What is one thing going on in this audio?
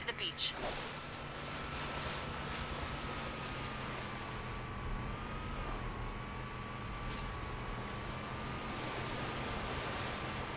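Water splashes under a speeding vehicle.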